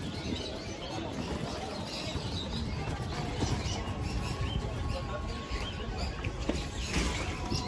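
A handcart's wheels rattle and rumble over paving stones.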